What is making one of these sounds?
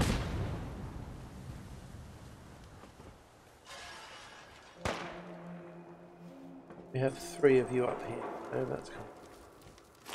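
Footsteps crunch over rubble.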